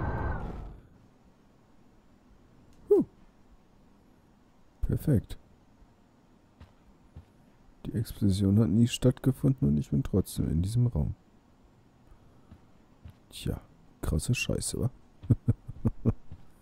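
Footsteps fall softly on a carpeted floor.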